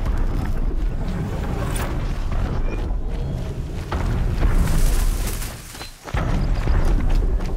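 Footsteps run quickly over soft sand.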